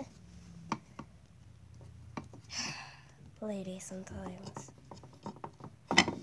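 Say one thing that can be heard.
A plastic toy taps lightly against wood.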